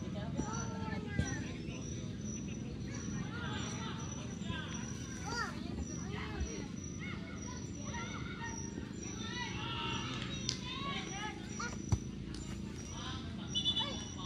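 Young men shout in the distance across an open field.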